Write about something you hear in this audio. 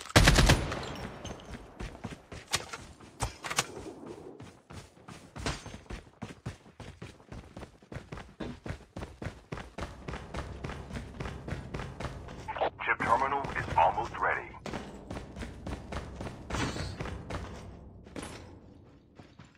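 Quick, steady footsteps run along a hard road.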